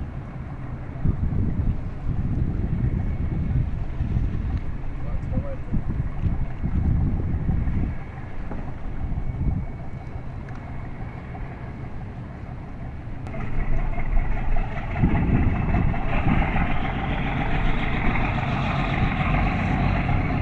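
A boat engine hums steadily across the water.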